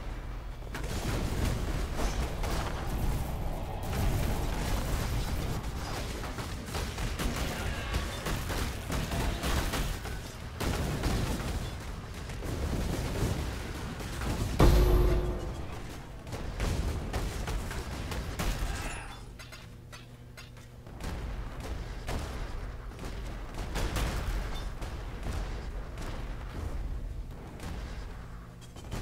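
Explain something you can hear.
Spell blasts and fiery explosions crackle and boom in quick succession.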